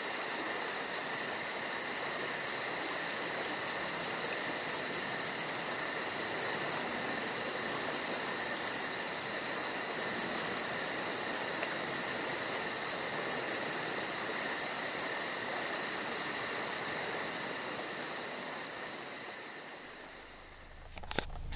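A river flows gently.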